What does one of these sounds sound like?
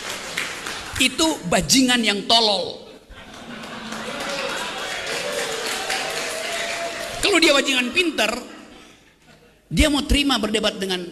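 A man speaks animatedly into a microphone over a loudspeaker in an echoing hall.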